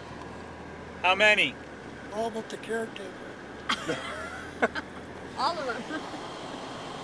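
An elderly man talks inside a moving car.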